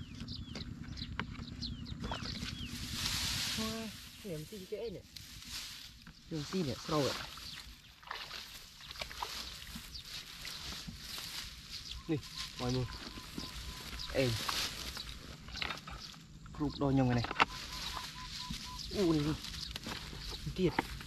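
Dry straw rustles and crackles as hands and feet move through it.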